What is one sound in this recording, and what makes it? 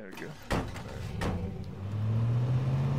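A vehicle engine starts up and revs with a rising hum.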